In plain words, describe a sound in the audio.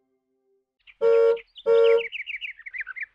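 A toy car horn honks twice.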